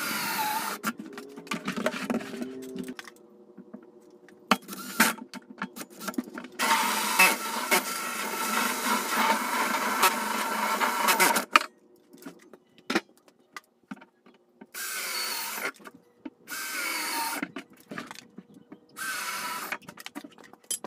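A power drill whirs as a bit cuts through hard plastic in short bursts.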